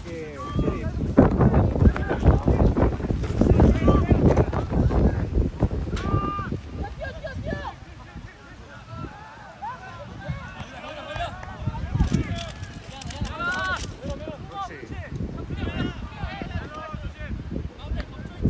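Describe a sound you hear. Young men shout and call out to each other across an open field outdoors.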